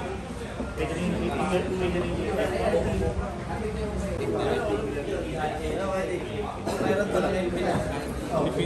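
A crowd of men talk loudly over one another nearby.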